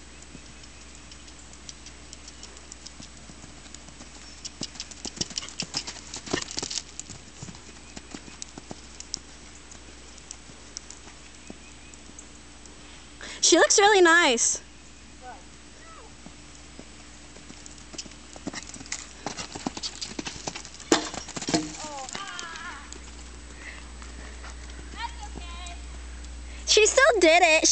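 A horse's hooves thud on soft sand as it canters and jumps.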